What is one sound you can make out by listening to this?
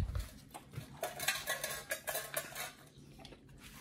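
A dog's collar chain clinks against a metal bowl.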